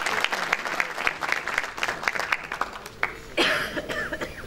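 An audience claps its hands in applause.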